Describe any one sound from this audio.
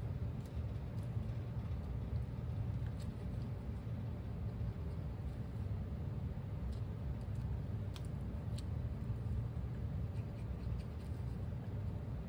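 Small pieces of paper tap and rustle softly.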